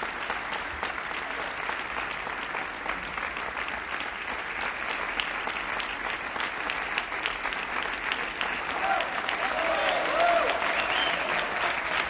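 A large crowd applauds outdoors.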